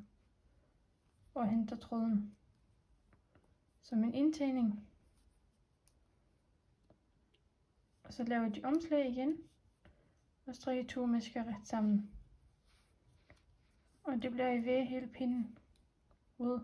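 Wooden knitting needles click and tap softly.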